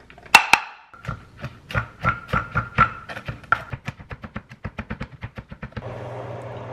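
A knife chops rapidly on a cutting board.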